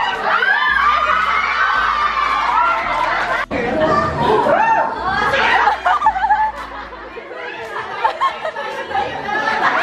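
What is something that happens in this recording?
A crowd of young women shriek and cheer excitedly.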